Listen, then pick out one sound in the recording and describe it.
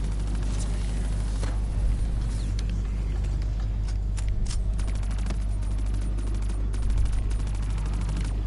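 A heavy gun fires in rapid bursts with booming low rumbles.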